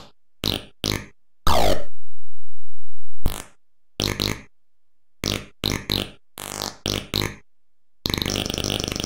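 Short electronic game beeps and zaps sound in quick bursts.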